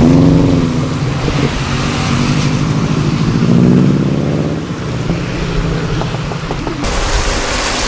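A car engine revs loudly and accelerates away.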